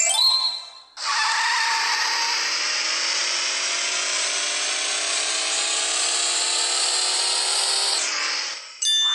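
A toy car engine hums steadily, then cuts off.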